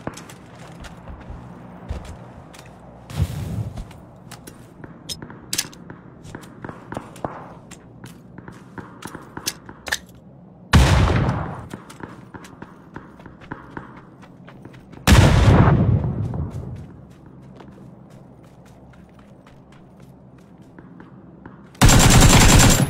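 Footsteps crunch quickly over dirt and wooden planks.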